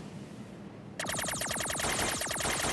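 Rapid electronic shots fire in quick bursts.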